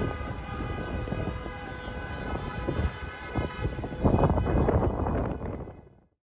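Car horns blare steadily.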